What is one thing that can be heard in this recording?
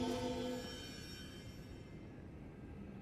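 A magical shimmer chimes brightly and slowly fades away.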